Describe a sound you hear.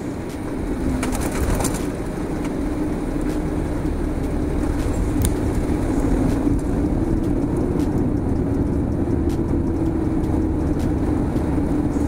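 Airliner wheels rumble over the runway.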